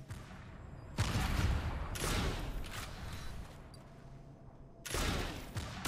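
Gunfire from a game crackles in bursts.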